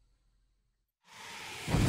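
Loud television static hisses suddenly.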